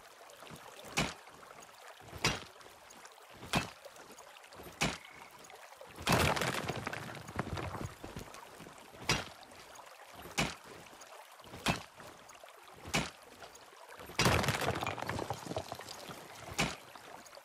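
A pickaxe strikes rock with sharp, ringing blows.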